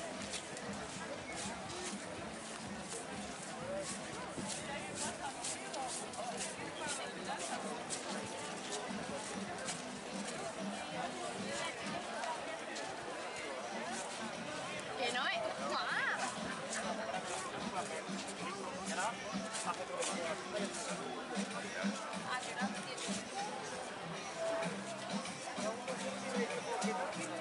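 A crowd murmurs and chatters outdoors all around.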